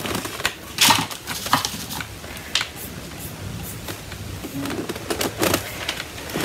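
Fabric rustles and crinkles under fingers.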